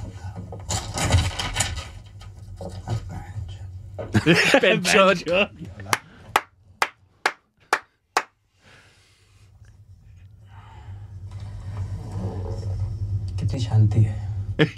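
Two men laugh heartily into microphones.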